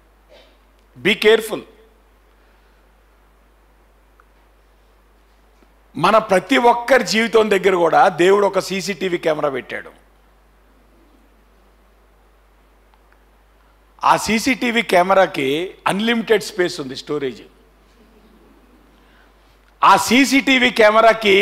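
A man speaks with animation into a microphone, in bursts with pauses.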